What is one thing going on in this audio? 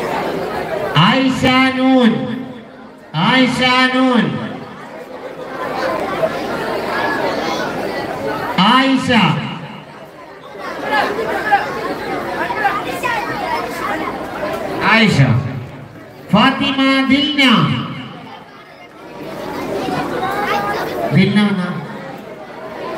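A man chants loudly through a loudspeaker in long drawn-out phrases.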